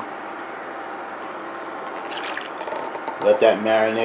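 Cream pours from a jug onto pasta in a pot.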